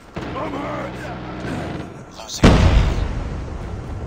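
A rifle fires in bursts in a game.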